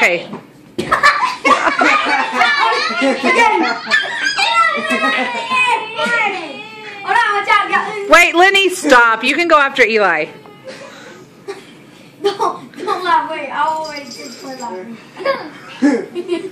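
Young boys shout and laugh excitedly close by.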